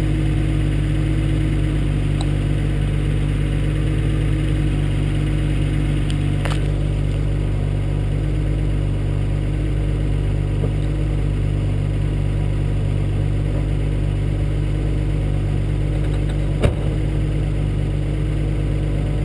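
A car engine idles with a steady low rumble close by.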